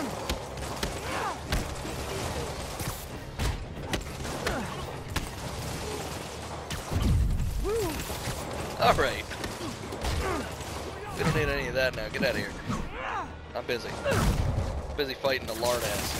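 Punches and kicks thud in a fast fight.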